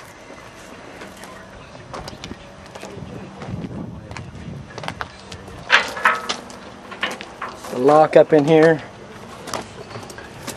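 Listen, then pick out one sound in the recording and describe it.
A hand knocks and taps on a metal panel.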